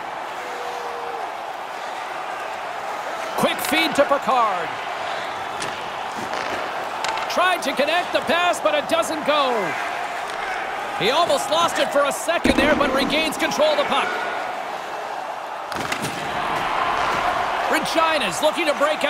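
A crowd murmurs and cheers steadily in a large arena.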